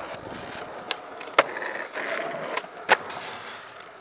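A skateboard clacks sharply against the ground.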